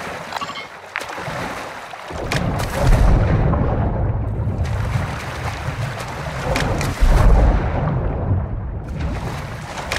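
Water splashes as a swimmer strokes through it.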